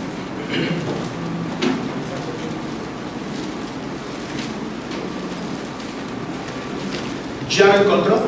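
A man speaks through a microphone in an echoing hall, in a preaching tone that grows louder.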